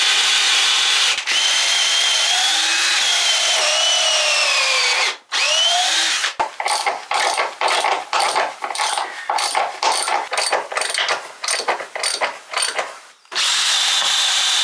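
A cordless drill whines, its pitch rising and falling as it drives a screw.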